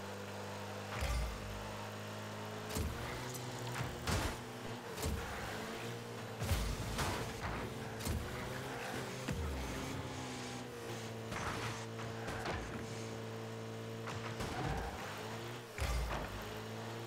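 A ball thuds loudly when struck, several times.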